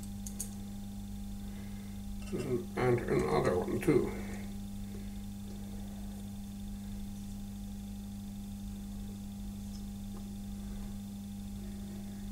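A screwdriver clicks and scrapes against small metal parts.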